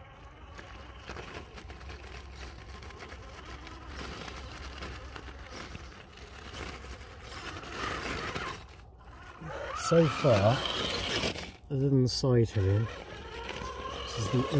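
A small electric motor whines.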